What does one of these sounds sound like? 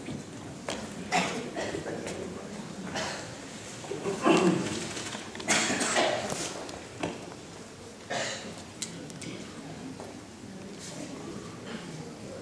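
A man speaks calmly through a microphone over loudspeakers.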